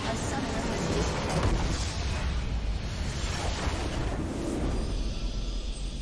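A large crystal shatters with a booming, rumbling explosion.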